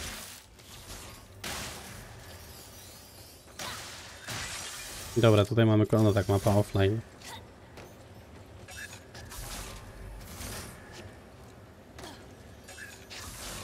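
Game effects whoosh and clatter.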